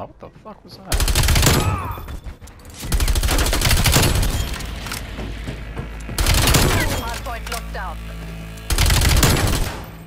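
Automatic gunfire rattles in loud bursts.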